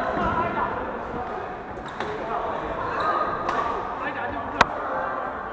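Several men talk and call out in a large echoing hall.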